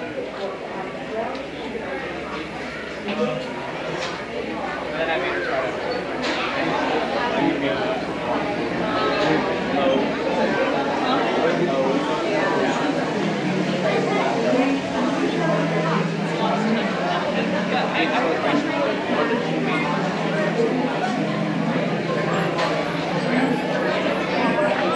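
A crowd of people chatters nearby in a busy, open space.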